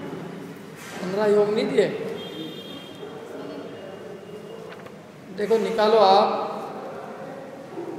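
Paper sheets rustle nearby.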